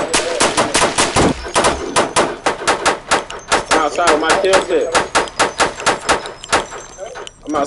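A gun fires rapid shots in quick bursts.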